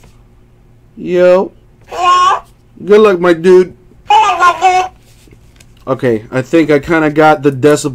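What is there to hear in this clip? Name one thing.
A toy hamster repeats speech in a squeaky, high-pitched voice.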